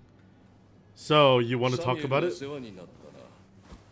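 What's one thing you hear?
A second man speaks in a firm, deep voice up close.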